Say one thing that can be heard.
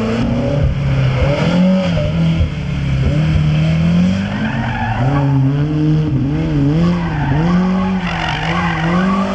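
Tyres squeal on tarmac.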